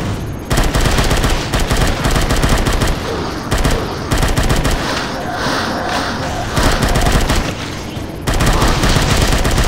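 An automatic rifle fires rapid bursts.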